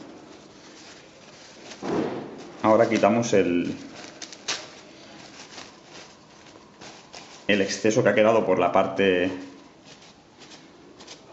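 A paper towel rustles and crinkles in someone's hands.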